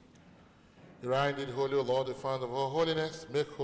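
A man chants in a sung voice through a microphone in an echoing hall.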